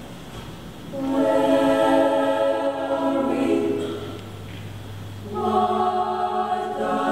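A choir of young men and women sings in harmony in a large hall.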